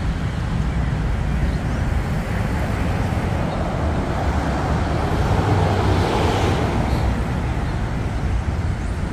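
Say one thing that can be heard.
Wind blows steadily outdoors with a low rumble.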